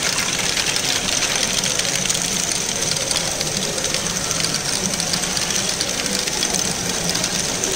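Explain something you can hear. Plastic balls clatter and rattle through a toy ball machine.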